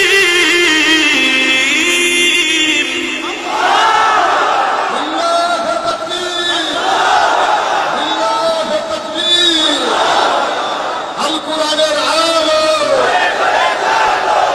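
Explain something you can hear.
A man chants in a drawn-out, melodic voice through a loudspeaker.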